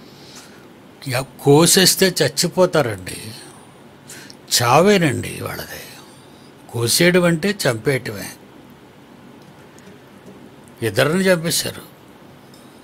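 An elderly man speaks slowly and with feeling into a close microphone, in short bursts with pauses.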